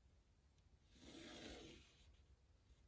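A pen scratches briefly across paper.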